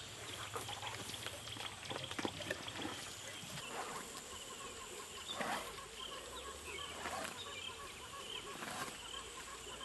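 An elephant rustles and tears at grass nearby.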